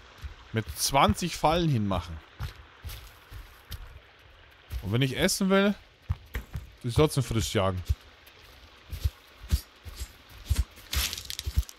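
Footsteps crunch softly through grass and twigs.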